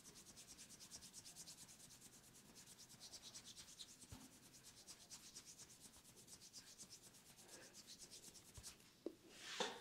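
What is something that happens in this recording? Hands rub and pat quickly on skin, close up.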